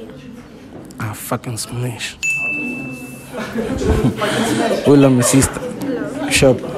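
A young man speaks animatedly into a microphone, heard through a loudspeaker.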